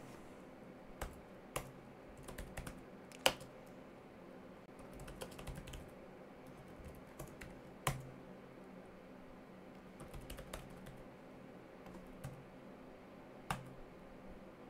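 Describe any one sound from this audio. Keys clatter on a keyboard in quick bursts of typing.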